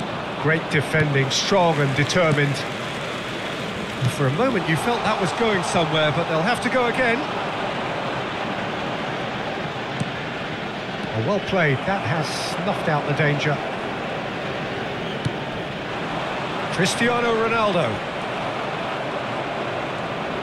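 A large crowd murmurs and cheers steadily in a big open stadium.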